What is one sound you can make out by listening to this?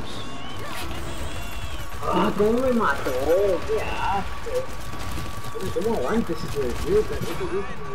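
An energy weapon fires rapid bursts of shots.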